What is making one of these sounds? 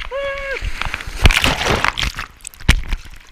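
A wave crashes and churns underwater.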